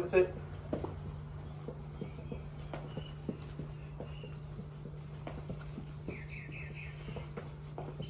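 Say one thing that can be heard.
Feet thump lightly on a floor.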